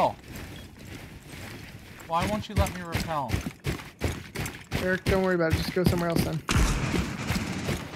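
Footsteps crunch quickly over snow.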